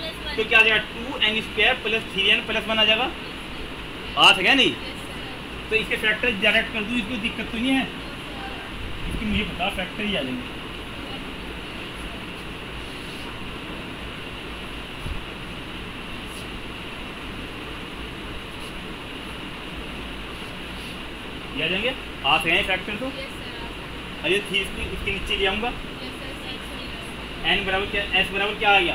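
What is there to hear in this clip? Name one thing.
A man speaks calmly, lecturing in a slightly echoing room.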